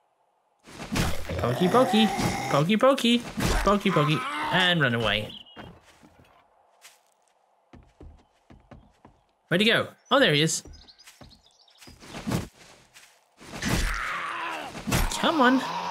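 A knife slashes and thuds against a zombie.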